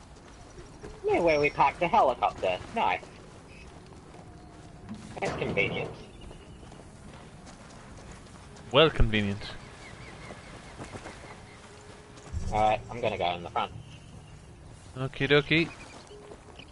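A young man talks in bursts into a close microphone.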